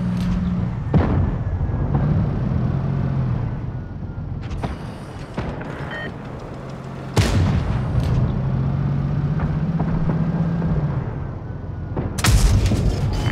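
A tank cannon fires with loud booms.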